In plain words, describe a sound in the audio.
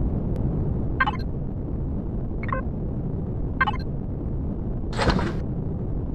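Short electronic clicks sound as menus open.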